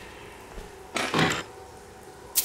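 A heavy chest lid scrapes open.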